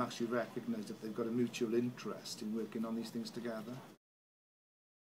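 A middle-aged man speaks calmly and directly, close to the microphone.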